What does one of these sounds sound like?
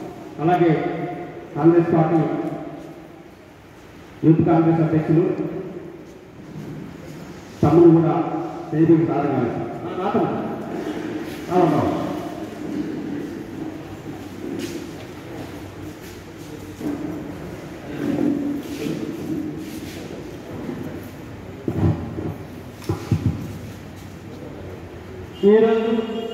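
A man speaks loudly and with animation through a microphone and loudspeakers, echoing in a large hall.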